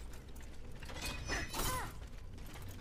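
Metal weapons clash in a fight.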